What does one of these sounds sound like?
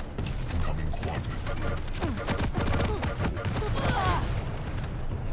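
A weapon fires rapid crackling electric bolts.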